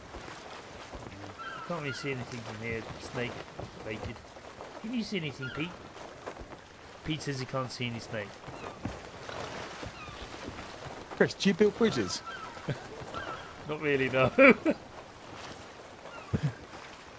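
Sea waves wash gently against a wooden ship.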